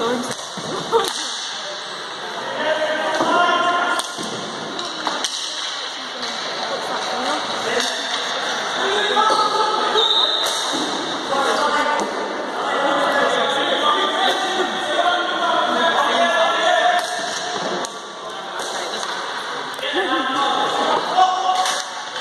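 Hockey sticks clack against a ball and each other.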